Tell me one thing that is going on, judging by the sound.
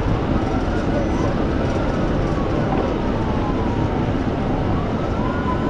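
Tyres rumble loudly on the road.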